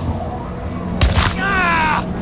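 A heavy thud sounds as someone lands hard on the ground.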